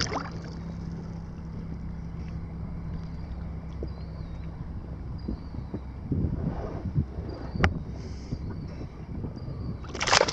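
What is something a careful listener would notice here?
Choppy water laps and splashes close by.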